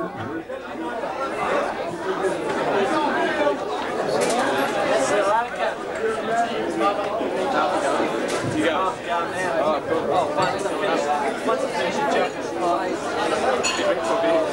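A crowd chatters and cheers loudly.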